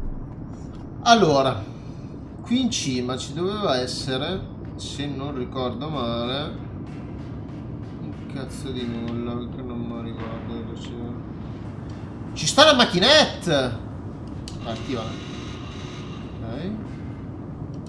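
A young man talks animatedly, close to a microphone.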